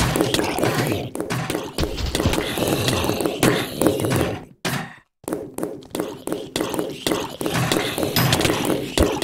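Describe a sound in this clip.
Video game gunshots fire rapidly, again and again.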